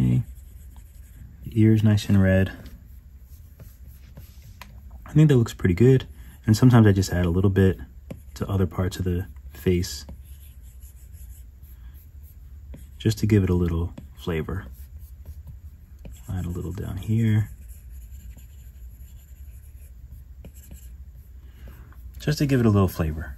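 A stylus taps and scrapes softly on a glass surface.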